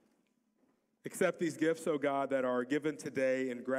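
A middle-aged man reads aloud through a microphone.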